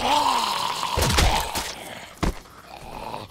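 An axe thuds into a body.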